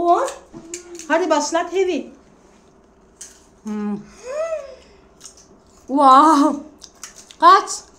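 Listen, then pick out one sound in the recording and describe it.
A young girl crunches on a crisp snack.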